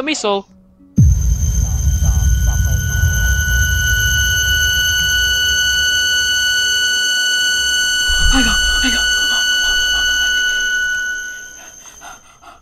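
A deep rumbling blast roars and slowly fades.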